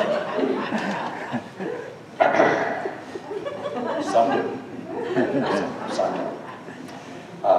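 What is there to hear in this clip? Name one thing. An elderly man speaks with animation through a microphone in a large echoing hall.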